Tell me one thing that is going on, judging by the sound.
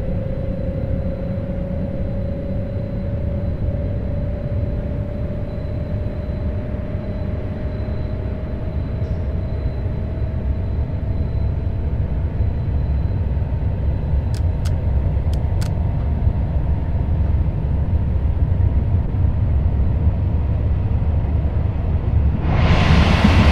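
An electric train motor whines, rising slowly in pitch as the train speeds up.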